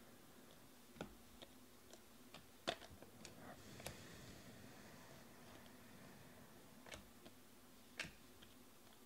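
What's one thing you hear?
Trading cards flick and slap as they are shuffled by hand, close up.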